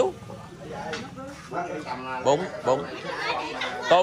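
Men talk close by.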